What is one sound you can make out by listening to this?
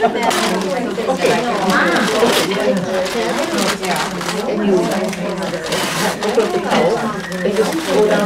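Plastic gift wrap rustles and crinkles as a woman unwraps a gift.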